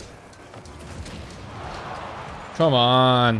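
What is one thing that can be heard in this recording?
A ball explodes with a loud blast.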